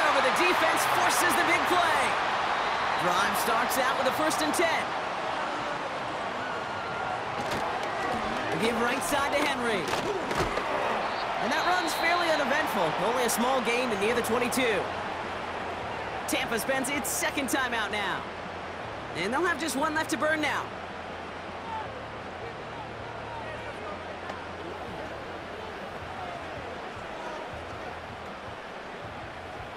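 A stadium crowd roars and cheers.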